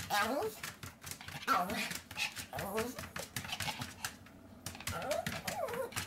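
A small dog's claws tap and patter on a hard floor.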